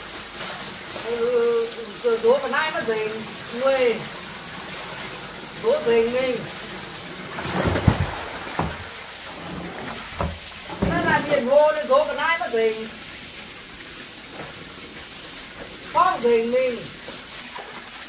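A woman talks nearby in short bursts.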